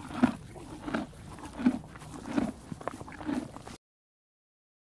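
A zebra tears and chews grass up close.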